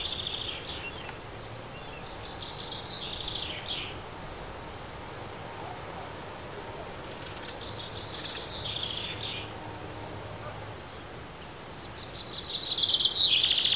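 Small birds chirp and twitter outdoors.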